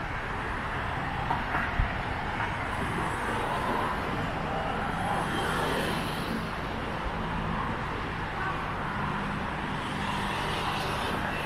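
Traffic hums steadily along a nearby road.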